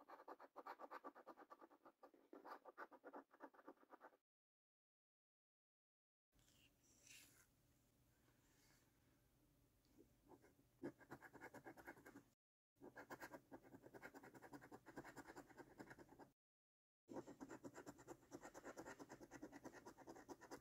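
A coin scrapes rapidly across a scratch card.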